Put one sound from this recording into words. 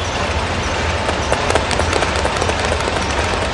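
Light footsteps patter across a hard floor.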